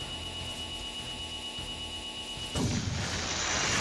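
An electric blast crackles and roars.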